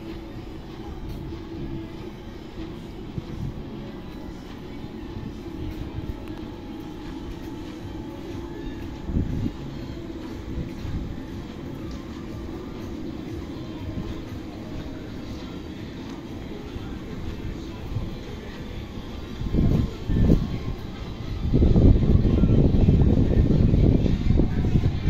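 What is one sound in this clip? People chatter faintly in the distance outdoors.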